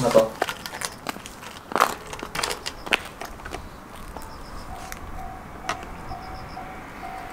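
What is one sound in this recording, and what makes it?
A bicycle clatters as it is lifted and handled.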